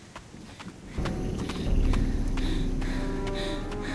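Footsteps rustle quickly through leafy undergrowth close by.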